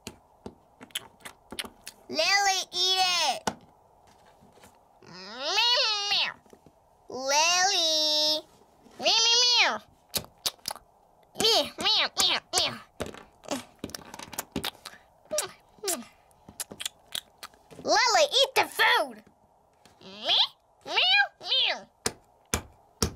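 Small toys tap and knock on a wooden floor.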